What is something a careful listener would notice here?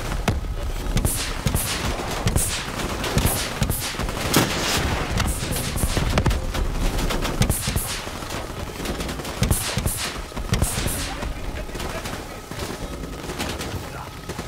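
Gunfire and explosions boom and crackle in rapid bursts.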